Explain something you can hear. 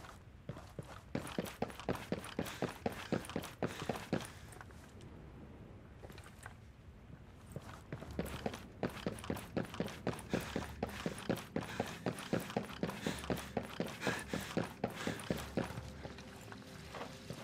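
Footsteps tread quickly across a hard floor.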